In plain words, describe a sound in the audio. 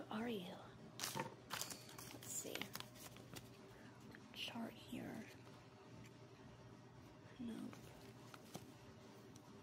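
Paper and cardboard packaging rustle and crinkle in someone's hands.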